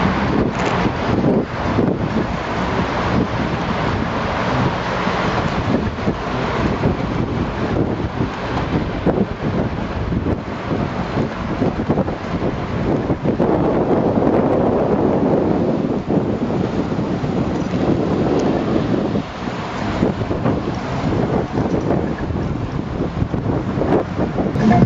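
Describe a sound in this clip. Wind rushes loudly and steadily past.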